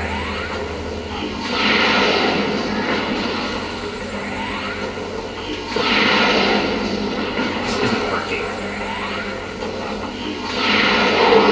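A game's energy weapon charges with a rising whine.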